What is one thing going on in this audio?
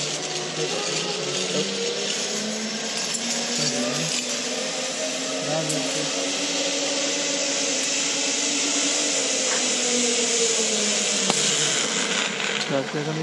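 A zipline pulley whirs steadily along a cable.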